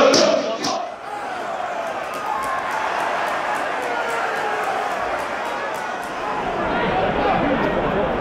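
A distant crowd roars and murmurs.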